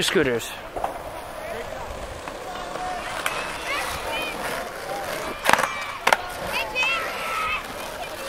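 Skateboard wheels roll over concrete at a distance.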